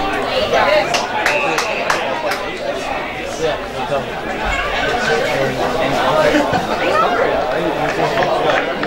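Distant players call out to one another outdoors across an open field.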